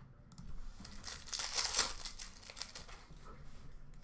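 A foil card pack is torn open.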